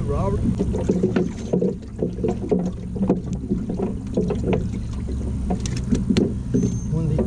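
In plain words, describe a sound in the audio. A fish flops and slaps against a boat deck.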